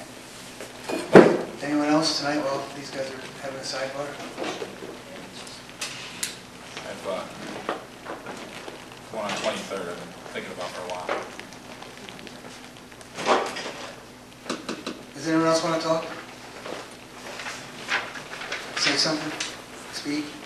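A second man answers calmly into a microphone.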